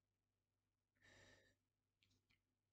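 Cards slide on a wooden table.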